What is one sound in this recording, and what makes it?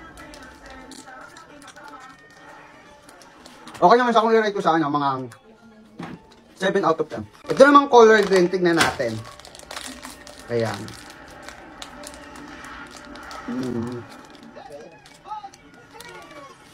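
A plastic wrapper crinkles between fingers.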